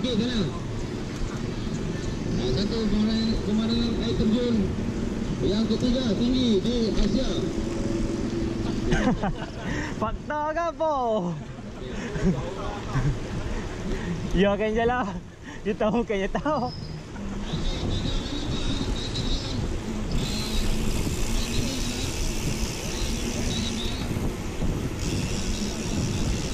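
Wind buffets loudly against a moving bicycle.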